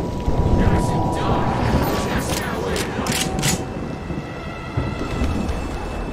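Winged creatures shriek and screech.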